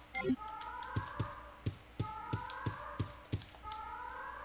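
Footsteps thud at a steady pace.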